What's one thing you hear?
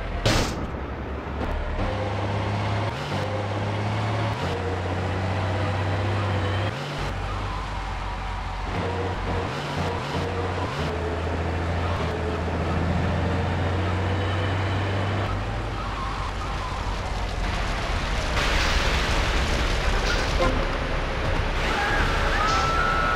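A heavy truck engine rumbles steadily as it drives.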